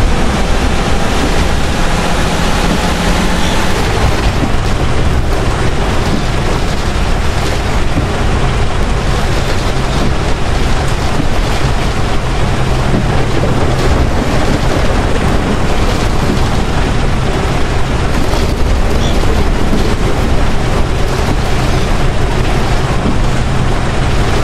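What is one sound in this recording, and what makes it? Windscreen wipers swish back and forth.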